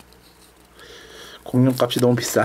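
A sticker is peeled off its paper backing with a soft crackle.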